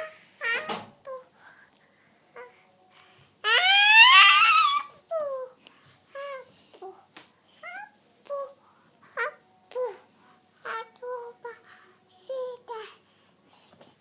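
A toddler girl babbles and chatters close by.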